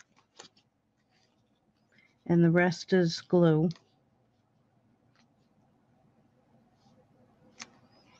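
A glue pen dabs and scrapes against paper.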